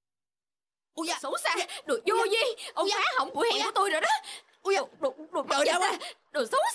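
A young woman argues loudly.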